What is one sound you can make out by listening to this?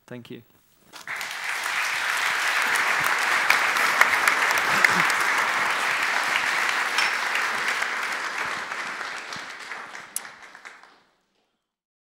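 An audience applauds in a large room.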